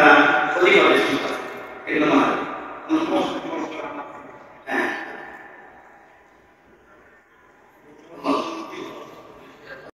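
A man chants loudly through a loudspeaker, echoing in a large hall.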